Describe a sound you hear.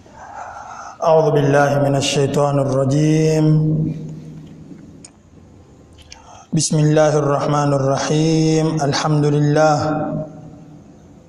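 A man chants in a melodic voice, close to a microphone.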